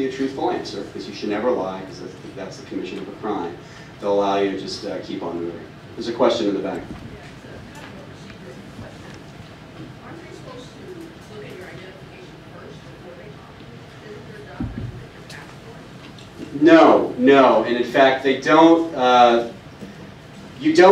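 A man speaks calmly into a microphone, pausing now and then.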